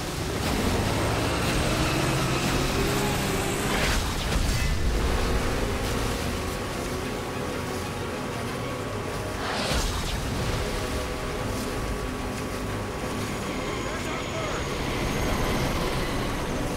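Water splashes against a speeding boat.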